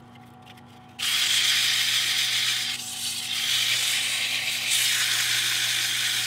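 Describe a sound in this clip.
Sandpaper rasps against spinning wood.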